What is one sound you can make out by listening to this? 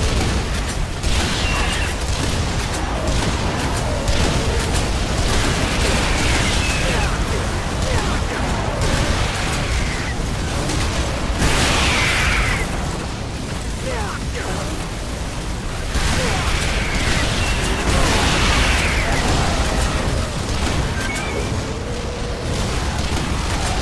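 Explosions boom again and again.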